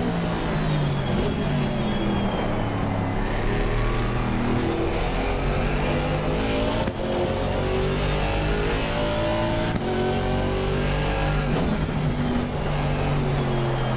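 A racing car engine roars loudly, rising in pitch through each gear and dropping at each shift.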